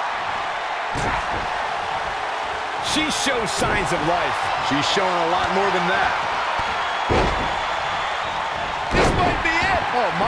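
A wrestler's body thuds onto a wrestling ring mat.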